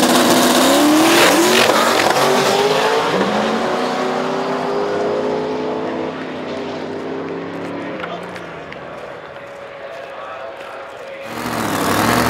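A drag racing car's V8 engine roars away at full throttle and fades into the distance.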